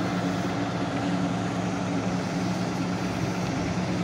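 A vehicle engine hums nearby on a street outdoors.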